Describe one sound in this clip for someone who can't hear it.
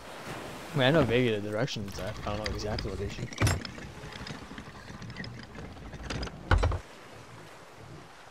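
Waves wash gently against a wooden ship.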